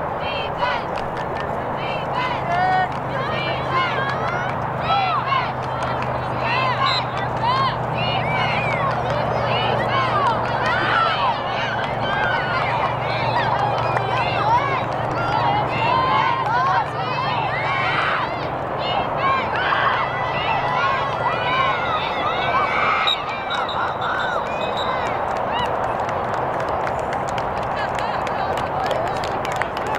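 Girls shout and call out to each other across an open field.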